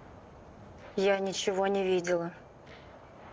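A woman speaks quietly and intensely, close by.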